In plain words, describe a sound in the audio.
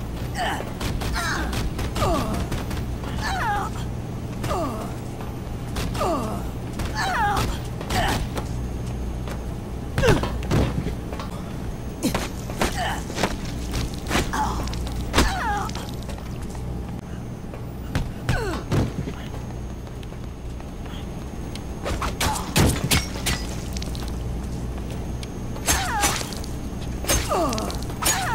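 Heavy blows thud and smack again and again.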